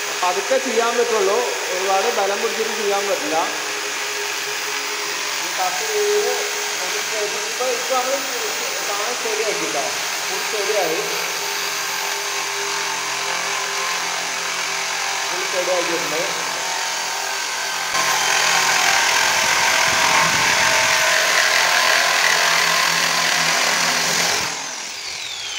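An electric drill whines as it grinds through wet stone.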